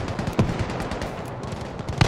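A rifle fires a sharp shot.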